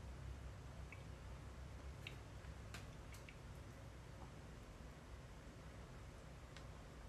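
Small objects click and tap softly close by.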